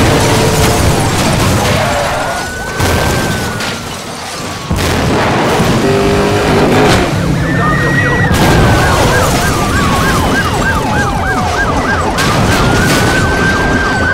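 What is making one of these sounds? A car crashes and tumbles with crunching metal.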